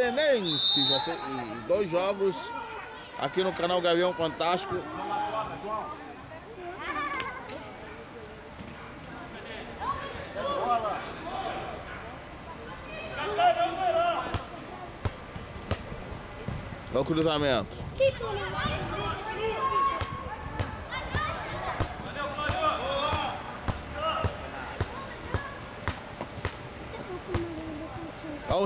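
Men and women chatter and call out close by, outdoors.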